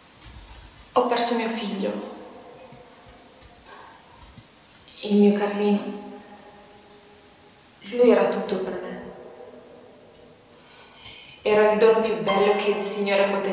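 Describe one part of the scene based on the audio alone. A young woman speaks with feeling through a loudspeaker in a large echoing room.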